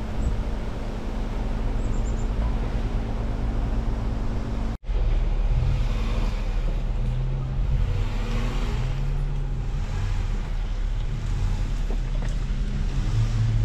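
An engine idles with a low, steady rumble close by.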